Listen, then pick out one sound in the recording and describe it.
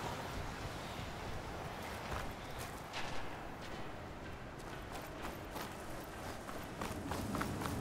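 Footsteps crunch over rough ground and debris.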